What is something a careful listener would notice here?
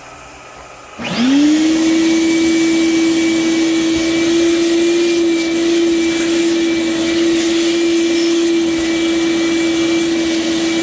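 A milling machine motor spins up and hums steadily with a high whine.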